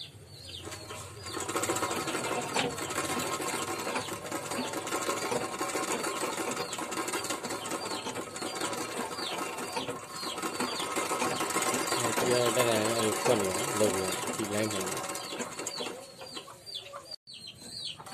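A sewing machine whirs steadily at high speed.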